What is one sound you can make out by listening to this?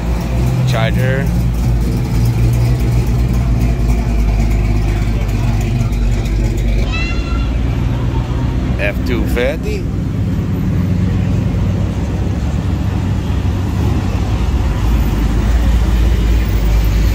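Muscle car engines rumble deeply as cars roll slowly past, outdoors.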